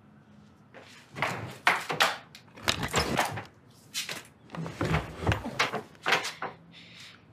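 A bed's lift-up frame creaks and thumps as it is raised.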